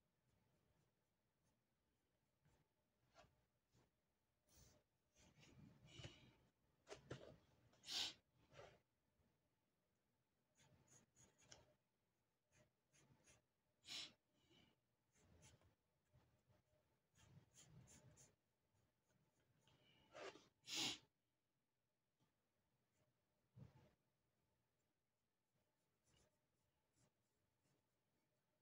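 A pencil scratches lightly across paper in short strokes.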